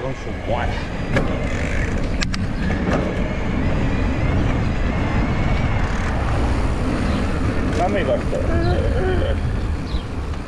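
Knobby bicycle tyres roll and rumble over pavement.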